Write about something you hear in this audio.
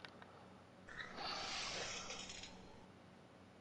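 A fishing rod swishes as a line is cast.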